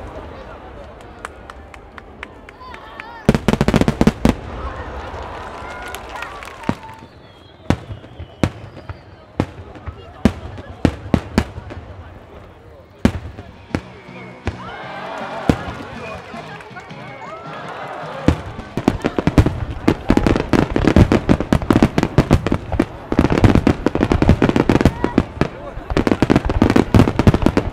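Fireworks boom and bang in rapid bursts.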